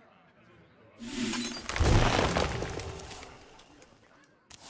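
A card is played with a loud magical whoosh and thud.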